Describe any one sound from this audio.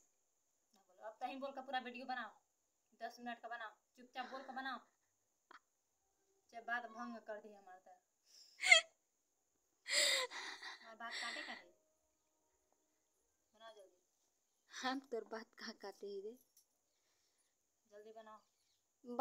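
A young woman speaks close by, with animation, in short bursts.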